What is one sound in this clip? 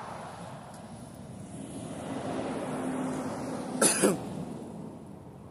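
A car passes by on a nearby street.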